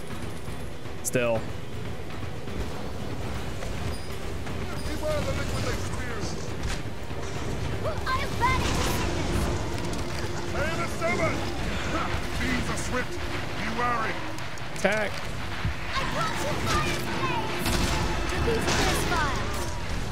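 Magic blasts and fire crackle in a fight.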